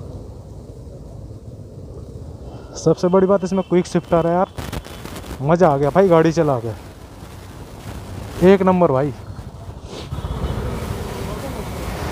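Motorcycle engines rumble close by.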